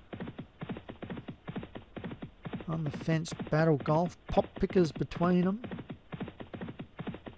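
Hooves thud rapidly as racehorses gallop.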